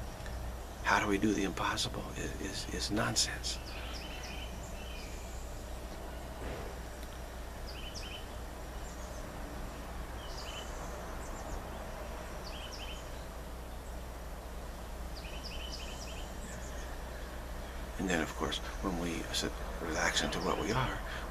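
A middle-aged man speaks calmly and close to a microphone.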